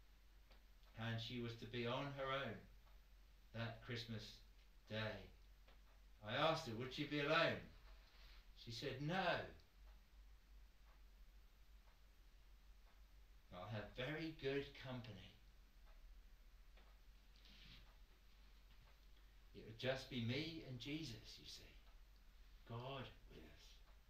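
A man speaks slowly and deliberately, with long pauses.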